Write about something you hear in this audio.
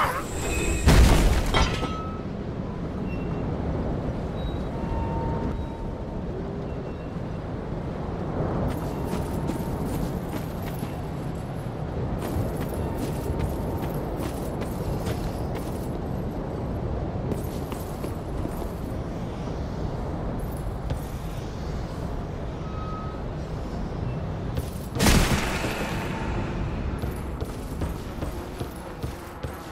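Armoured footsteps clank on dirt and wooden floorboards.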